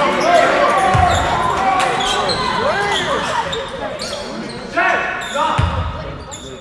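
A basketball bounces with dull thuds on a wooden court.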